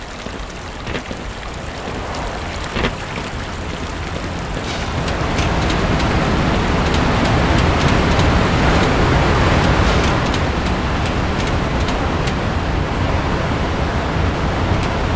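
Footsteps clang on a metal grate.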